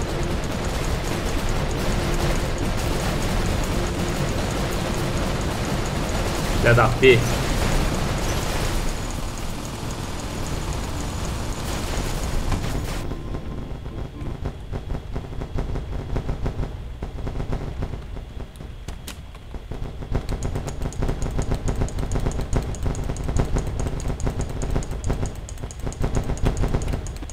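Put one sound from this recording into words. Heavy metal machines stomp with thudding footsteps.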